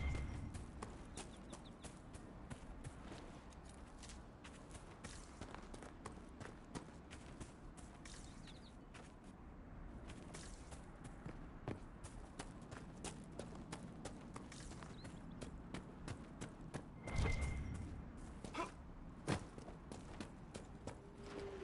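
Footsteps crunch steadily on grass and gravel.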